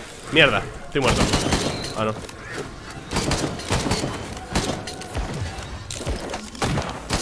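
Game weapons fire and strike with sharp blasts.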